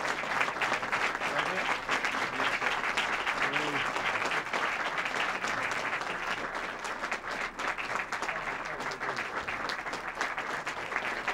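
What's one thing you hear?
An audience claps and applauds steadily in a large room.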